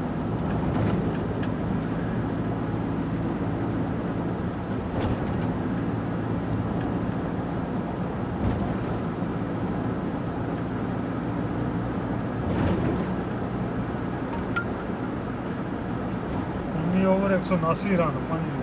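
A car engine hums steadily from inside the moving car.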